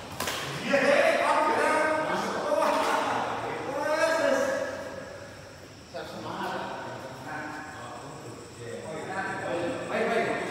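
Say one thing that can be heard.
Men call out loudly to each other in an echoing hall.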